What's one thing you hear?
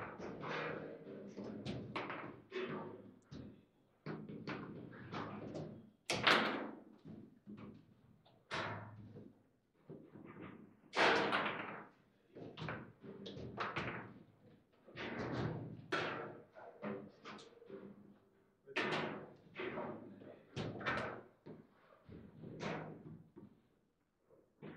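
Foosball rods clack and the ball knocks against the table.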